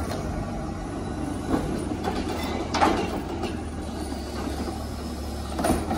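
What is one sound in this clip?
A garbage truck's mechanical arm clanks as it lifts and empties a bin.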